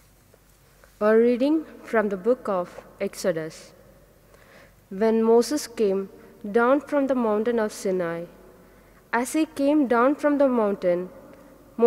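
A woman reads aloud calmly through a microphone in an echoing hall.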